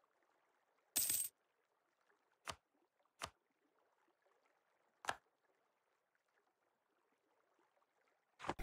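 Short game interface sounds click and chime.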